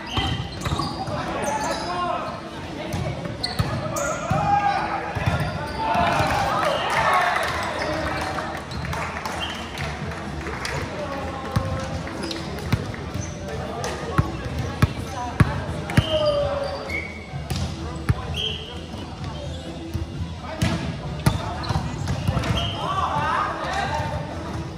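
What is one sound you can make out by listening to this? Players call out and talk across a large echoing hall.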